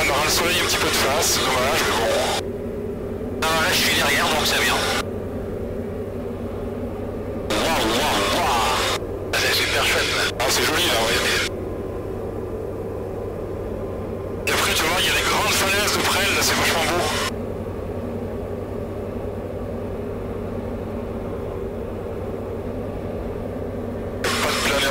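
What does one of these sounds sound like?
A small plane's engine drones steadily throughout.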